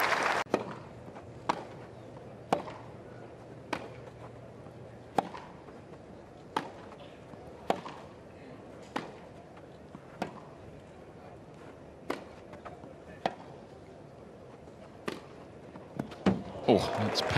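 Tennis balls are struck back and forth with sharp pops in a long rally.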